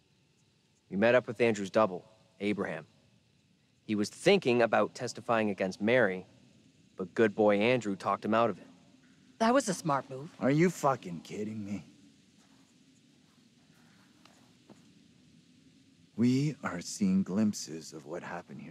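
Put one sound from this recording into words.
A young man speaks calmly and close up.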